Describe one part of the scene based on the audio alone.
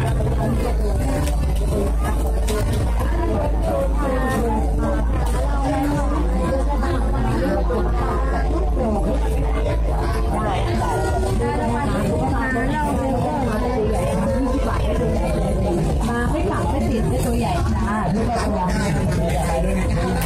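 A large crowd of people chatters all around outdoors.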